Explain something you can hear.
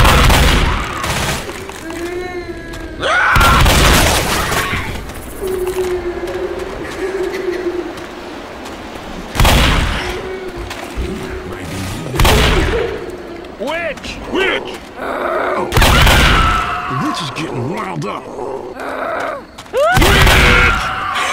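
A shotgun fires loud, booming blasts, one every few seconds.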